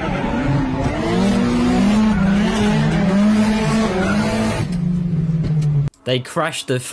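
A car engine revs loudly from inside the car.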